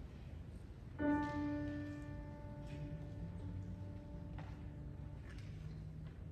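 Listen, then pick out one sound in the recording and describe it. A piano plays a few notes to give the pitch.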